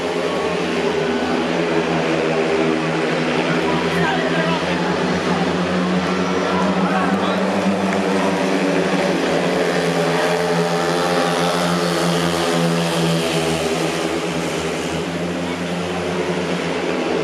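Motorcycle engines roar loudly and whine as they race around a track.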